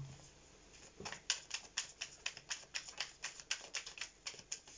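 Playing cards are shuffled with quick, light flicks and taps.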